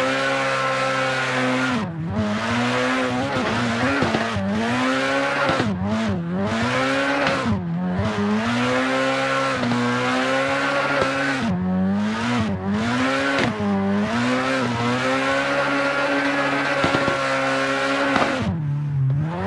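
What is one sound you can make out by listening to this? Tyres squeal steadily as a car drifts around bends.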